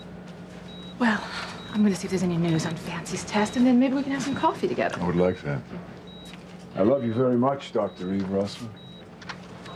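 A woman speaks in a tense voice.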